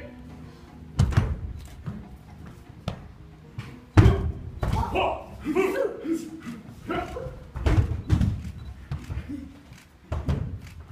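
Feet stamp and thud on a hard floor in an echoing room.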